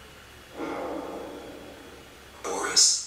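A young man exclaims in fright close to a microphone.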